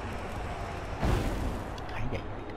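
A fiery blast whooshes and roars briefly.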